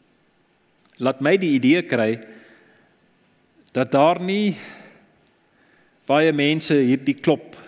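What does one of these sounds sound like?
A middle-aged man speaks with animation through a microphone in an echoing room.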